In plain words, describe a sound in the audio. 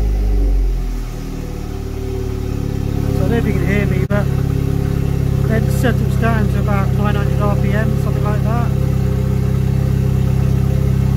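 A car engine idles with a steady, low rumble.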